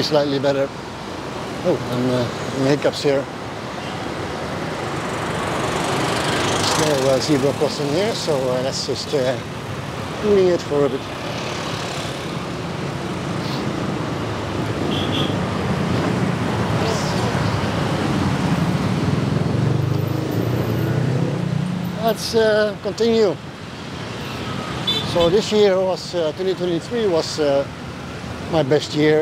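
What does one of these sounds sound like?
City traffic rumbles along a busy road.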